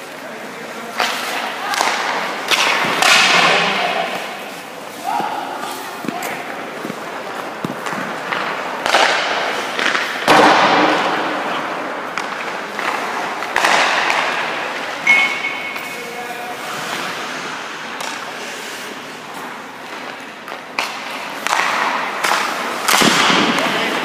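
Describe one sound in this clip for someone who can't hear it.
A hockey stick slaps a puck.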